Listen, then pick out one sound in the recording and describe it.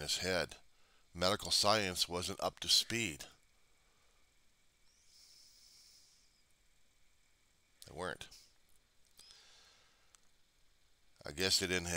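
A middle-aged man talks calmly and close up, heard through a headset microphone, with pauses.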